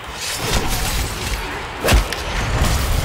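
A laser gun fires with a loud electric buzz.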